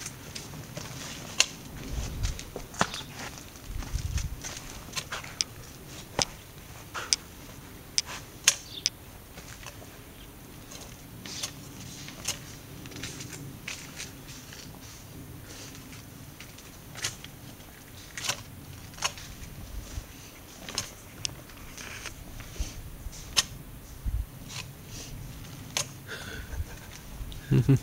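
A hoe scrapes and knocks against soil.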